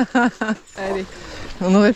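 Bicycle tyres roll over a muddy forest track.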